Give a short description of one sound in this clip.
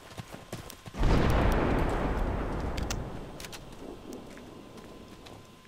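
A grenade bursts nearby with a rolling blast that slowly fades.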